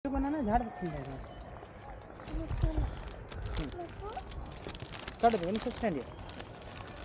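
A woman talks loudly nearby.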